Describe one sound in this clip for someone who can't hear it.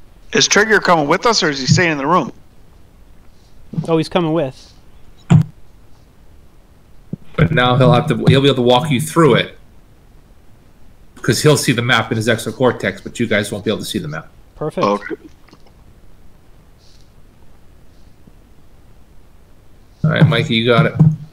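A man talks calmly over an online call, in bursts with pauses.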